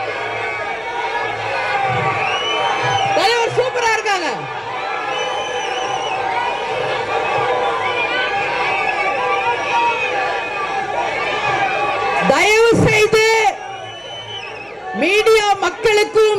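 A crowd of men cheers and shouts in the open air.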